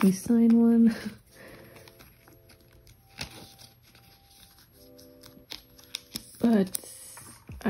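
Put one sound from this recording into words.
Plastic binder sleeves rustle and crinkle as cards are slid in and out.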